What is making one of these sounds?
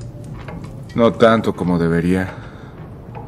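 A young man answers quietly in a low voice.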